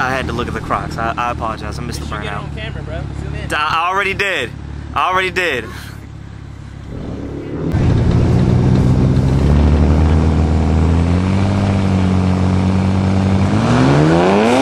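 A car engine idles and revs hard.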